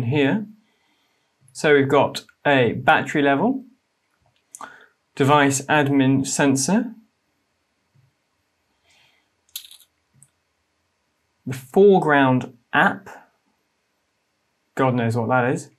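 A young man speaks calmly and closely into a microphone, in short phrases with pauses.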